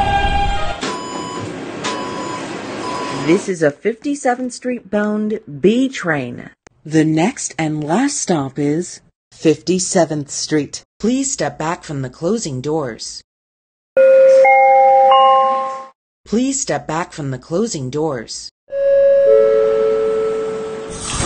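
Subway train doors chime as they open and close.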